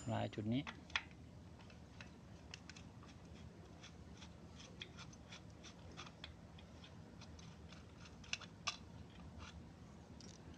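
A wrench clicks quickly as it turns a bolt.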